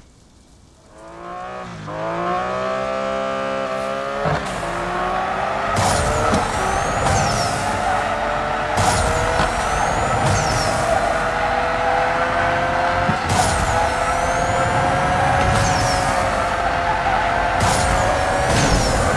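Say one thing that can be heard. A car engine revs up and roars at high speed.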